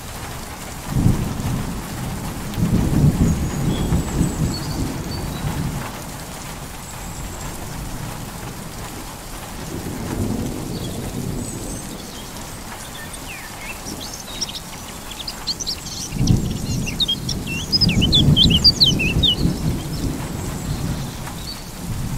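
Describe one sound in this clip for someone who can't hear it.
Wind blows in strong gusts outdoors.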